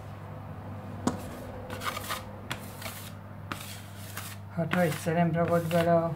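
A dough scraper scrapes and taps on a stone countertop.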